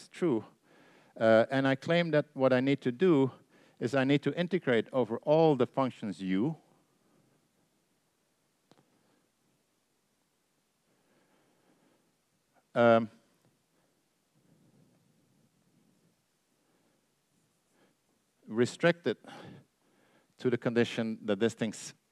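An older man lectures calmly through a microphone, pausing between phrases.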